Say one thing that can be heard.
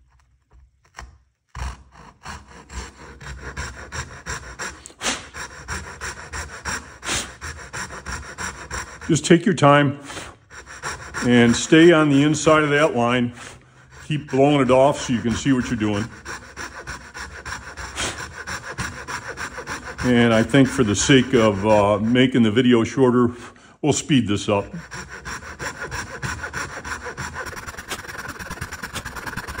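A hand tool grinds and scrapes into wood.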